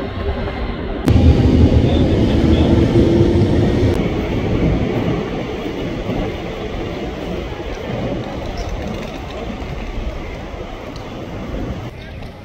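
Traffic hums in the street.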